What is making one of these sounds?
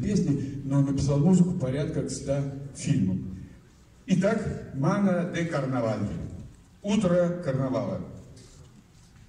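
A man announces through a microphone, his voice echoing outdoors.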